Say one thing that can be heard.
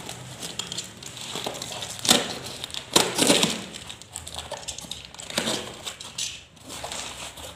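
Cardboard and paper packaging rustles and crinkles as hands tear it open.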